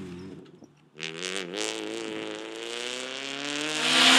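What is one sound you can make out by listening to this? Another rally car engine revs and grows louder as the car approaches.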